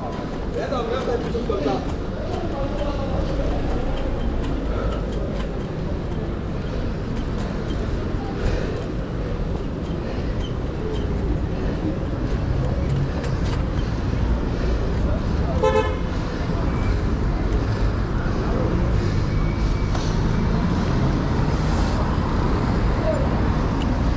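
Wind rushes steadily past while riding outdoors.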